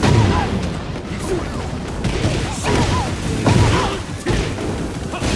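Heavy punches and kicks land with loud thuds and smacks.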